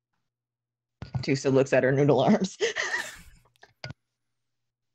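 A young man and women laugh over an online call.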